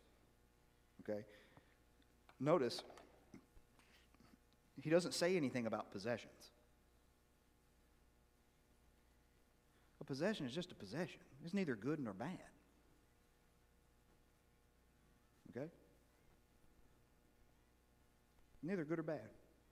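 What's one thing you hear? An elderly man speaks calmly through a microphone in an echoing hall, with long pauses.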